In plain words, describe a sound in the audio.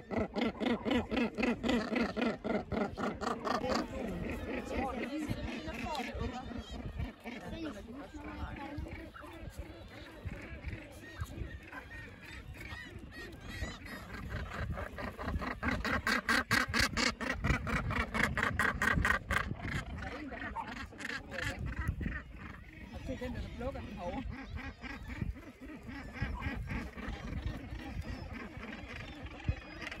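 A dense colony of gannets calls with harsh, rasping cries throughout.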